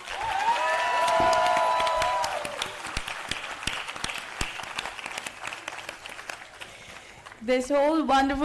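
Hands clap in applause, gradually thinning out.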